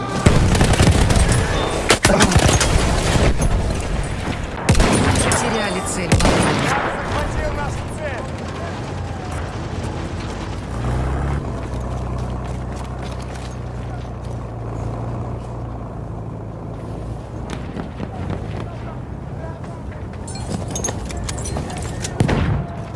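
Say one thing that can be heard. Explosions boom loudly nearby.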